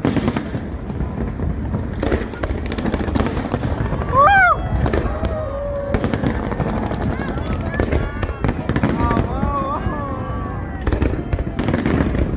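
Fireworks boom and crackle outdoors.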